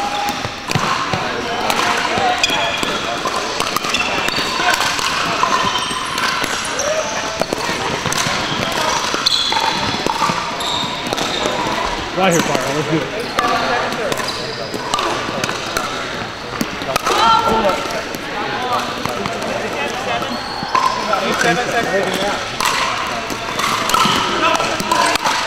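Voices of men and women chatter and call out in a large echoing hall.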